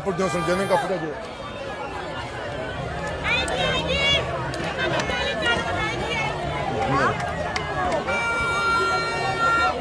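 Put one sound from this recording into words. A large crowd cheers, shouts and sings loudly outdoors.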